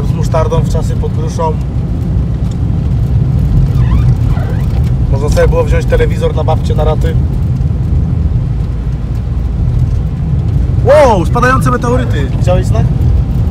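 Tyres rumble low and steady on a snowy road.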